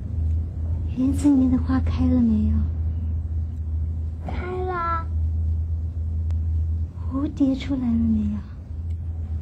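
A young woman asks questions softly nearby.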